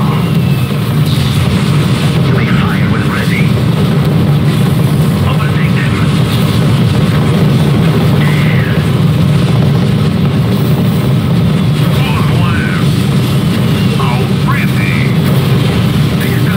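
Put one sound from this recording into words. Large engines drone steadily.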